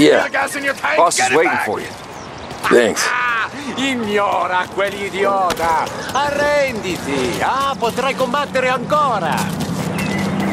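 Men talk loudly and with animation nearby.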